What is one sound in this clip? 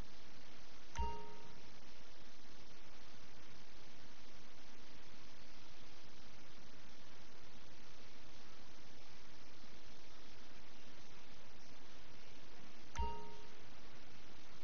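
A short electronic chime rings twice.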